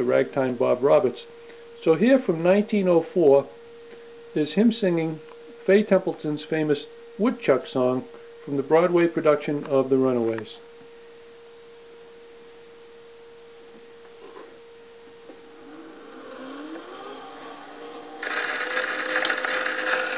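An old phonograph plays a scratchy recording.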